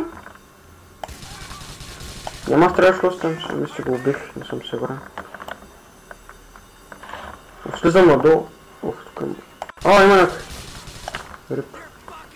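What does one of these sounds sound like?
A submachine gun fires a rapid burst of shots.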